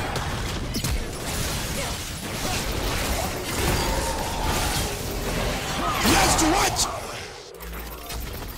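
Magic spells crackle and whoosh during a fast game fight.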